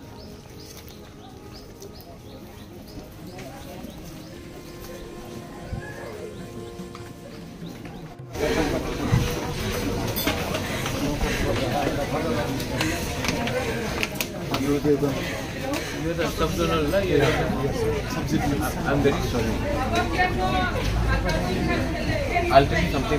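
A crowd of men and women murmur and talk nearby.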